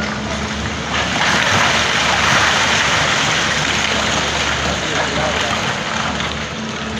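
Rocks tumble and crash down a slope.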